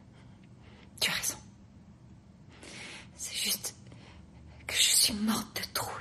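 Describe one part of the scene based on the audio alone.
A young woman speaks softly and emotionally close by.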